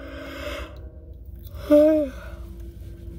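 A young woman yawns loudly close by.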